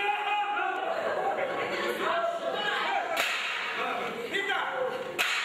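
Several women shout and wail in agitation.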